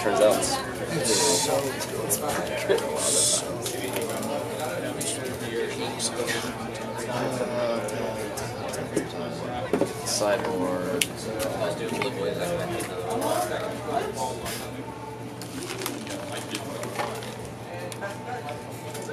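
Playing cards riffle and rustle as a deck is shuffled.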